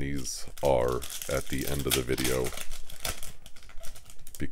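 A foil wrapper crinkles and rustles as it is torn open.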